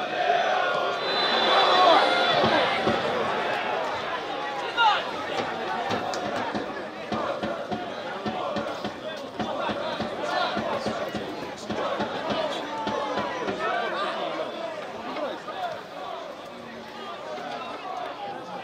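Men shout to each other across an open field.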